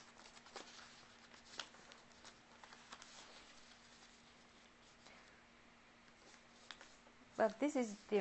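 Paper rustles and creases as it is folded.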